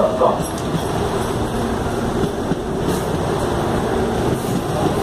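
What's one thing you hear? Train wheels clatter over the rail joints.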